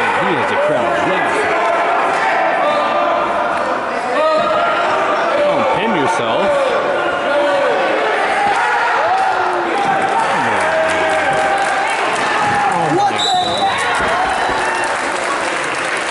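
Wrestlers thud and scuffle on a mat.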